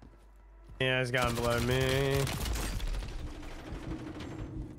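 Gunfire bursts out in sharp cracks.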